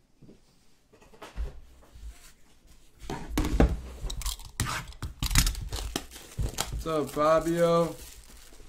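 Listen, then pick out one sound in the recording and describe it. A card pack's foil wrapper crinkles and tears in someone's hands.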